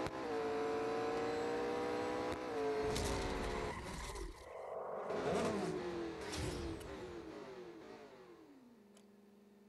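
A race car engine roars at high revs and then winds down.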